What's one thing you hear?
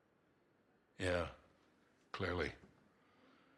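A man replies in a deep, calm voice.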